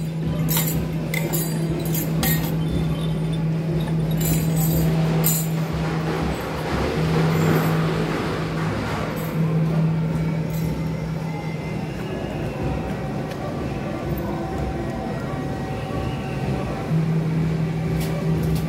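A crowd of people chatters outdoors in the street.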